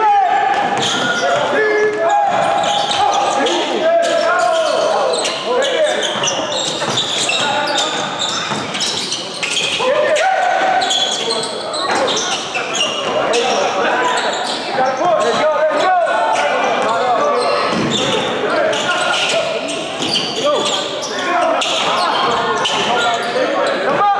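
Spectators cheer and shout in a large echoing gym.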